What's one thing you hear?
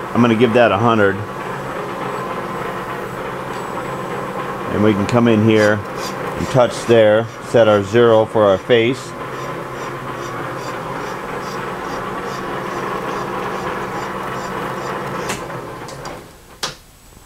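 A lathe motor hums steadily and then stops.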